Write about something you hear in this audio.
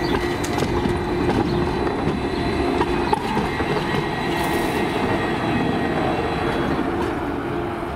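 A tram rumbles past close by, its wheels grinding on the rails.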